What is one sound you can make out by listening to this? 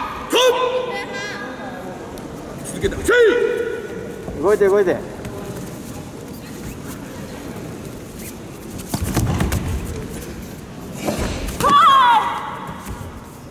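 Young women shout sharp karate cries in a large echoing hall.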